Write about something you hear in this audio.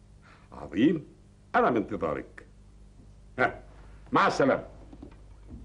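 An elderly man talks into a telephone with animation.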